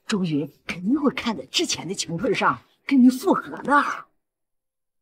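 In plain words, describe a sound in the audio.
A middle-aged woman speaks close by, agitated and emphatic.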